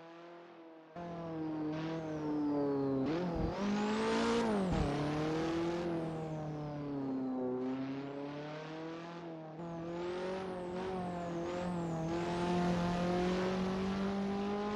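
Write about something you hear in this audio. A turbo whistles and flutters as the car accelerates.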